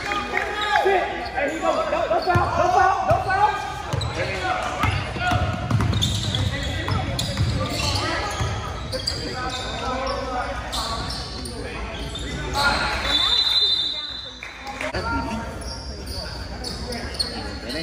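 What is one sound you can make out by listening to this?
Men and boys shout and talk nearby in an echoing gym.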